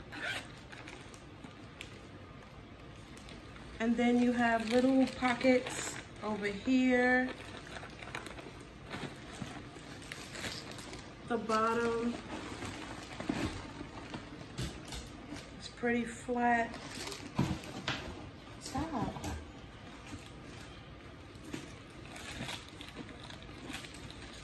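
A leather handbag rustles and creaks as it is handled.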